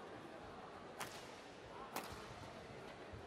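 A racket taps a shuttlecock with a light click.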